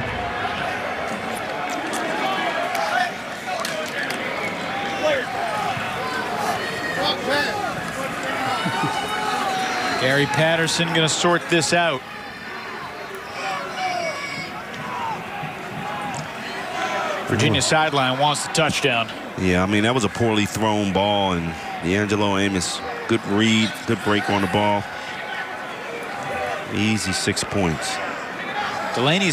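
A crowd murmurs faintly in a large stadium.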